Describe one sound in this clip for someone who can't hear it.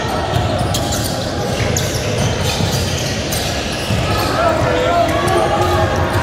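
Sneakers squeak sharply on a hardwood court in a large echoing hall.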